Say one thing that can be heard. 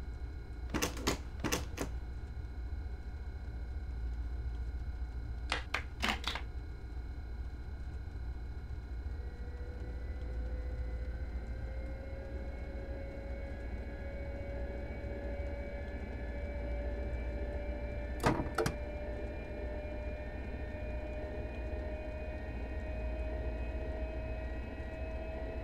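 A train's electric motor hums low and steady.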